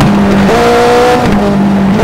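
Tyres skid and spray gravel.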